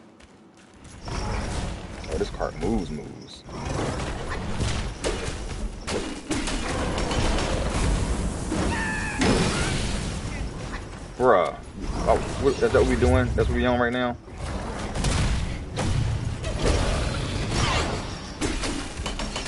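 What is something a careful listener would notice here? Metal clangs and weapons clash in a fight.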